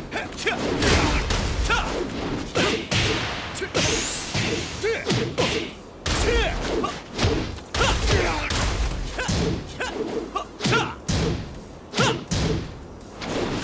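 Punches and kicks land with heavy thuds and smacks in quick bursts.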